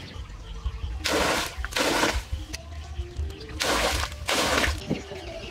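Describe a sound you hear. Water pours and splashes in short bursts.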